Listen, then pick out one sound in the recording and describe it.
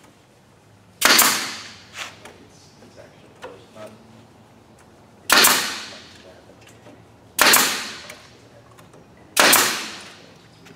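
A nail gun fires with sharp, loud bangs.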